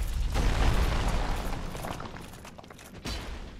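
Stone blocks crumble and tumble to the ground.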